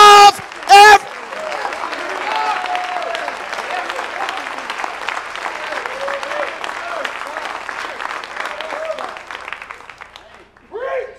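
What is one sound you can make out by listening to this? A crowd cheers and claps loudly, then quiets down.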